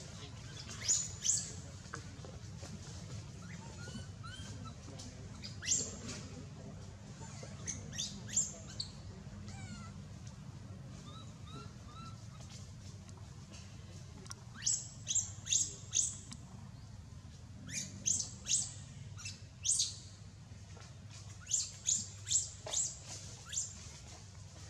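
A baby monkey gives short, high squeaks close by.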